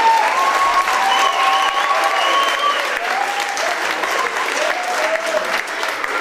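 A large audience applauds in a hall.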